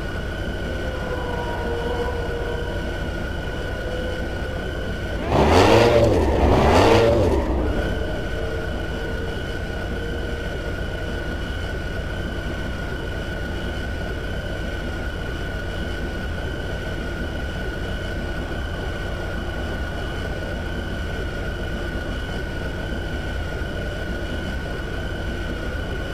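A car engine idles with a steady low hum and a thin whine.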